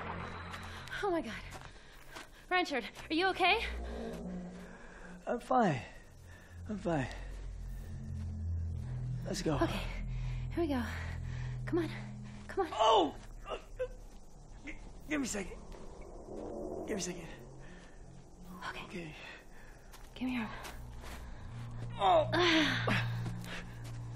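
A young woman speaks urgently and close by.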